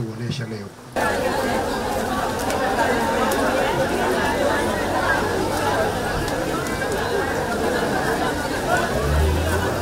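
A crowd murmurs and chatters outdoors.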